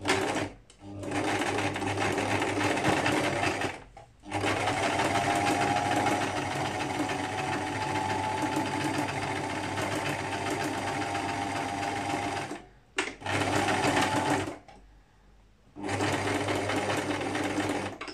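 A sewing machine runs with a steady whirring hum.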